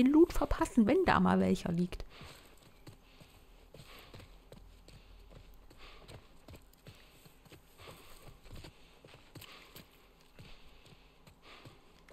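Footsteps run quickly over hard ground and grass.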